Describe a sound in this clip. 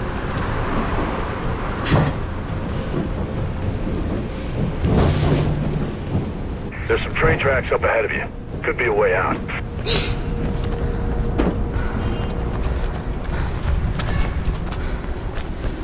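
Footsteps run quickly over a hard surface.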